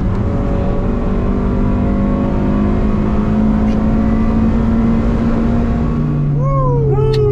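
A car engine roars loudly as it revs higher under acceleration.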